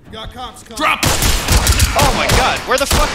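Rifle gunfire rattles loudly in rapid bursts.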